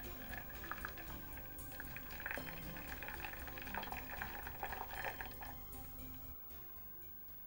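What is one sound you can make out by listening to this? Water pours and splashes into a basin.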